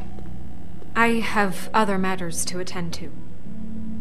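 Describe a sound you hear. A woman speaks calmly.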